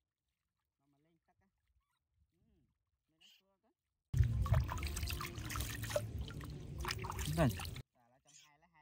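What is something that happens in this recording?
Water splashes as a baby monkey is dipped and washed.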